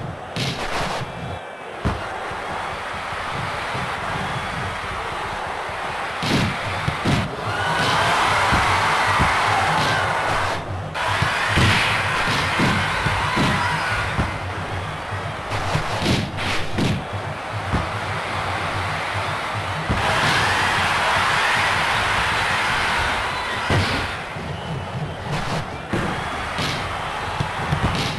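A ball is kicked with dull thuds, again and again.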